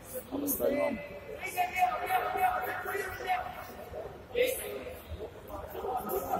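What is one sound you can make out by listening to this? Men call out and shout instructions in a large echoing hall.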